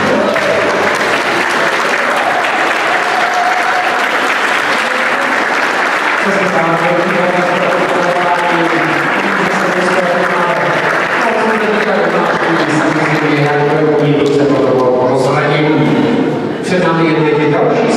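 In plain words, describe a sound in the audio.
A crowd of adults murmurs and chatters in the background.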